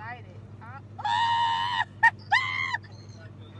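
A young woman shrieks loudly, close by.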